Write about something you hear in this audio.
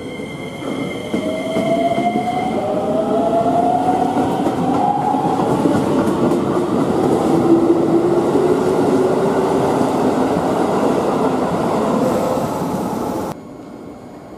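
Train wheels rumble and clatter loudly on the rails.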